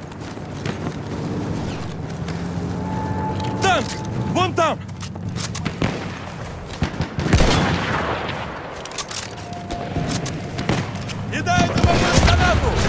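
Rifle shots crack and boom across open ground.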